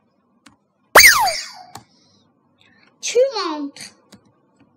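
A bright electronic chime rings out with a swooping tone.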